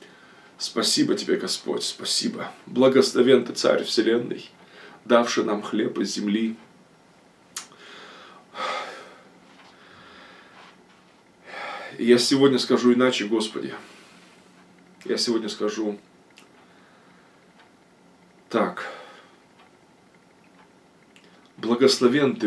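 A middle-aged man speaks close up, slowly and solemnly, in short phrases with pauses.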